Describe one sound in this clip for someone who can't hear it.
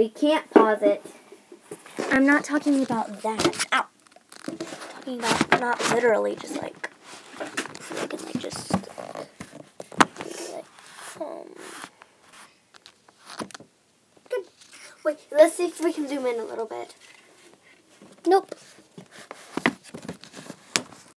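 Clothing rustles and bumps close by.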